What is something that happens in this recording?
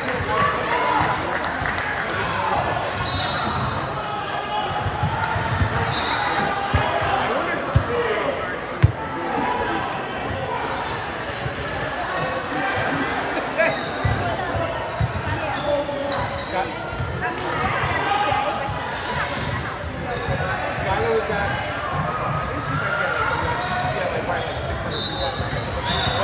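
A crowd chatters in a large echoing gym.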